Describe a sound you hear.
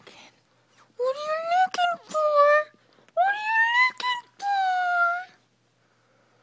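A small dog howls in long, rising wails close by.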